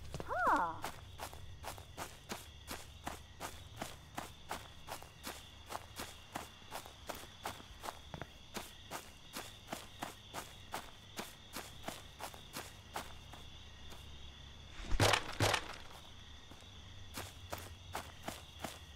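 Footsteps fall at a walking pace.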